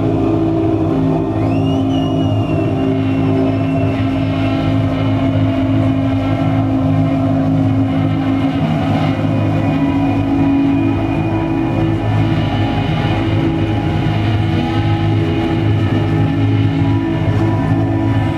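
Loud, droning music with steady sustained tones plays through loudspeakers in a large hall.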